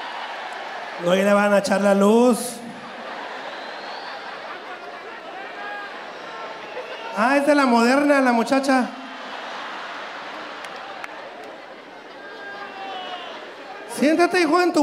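A man sings loudly through loudspeakers in a large hall.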